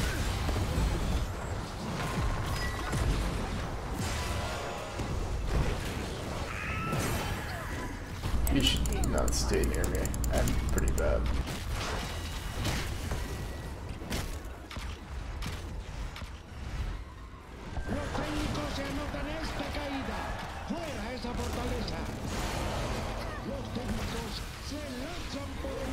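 Game spells whoosh and blast in a busy fight.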